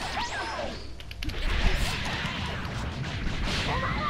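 Punches and kicks land with sharp thuds.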